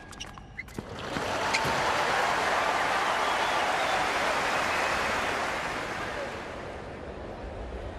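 A large crowd cheers and applauds loudly, then fades.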